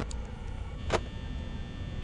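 A small fan whirs steadily.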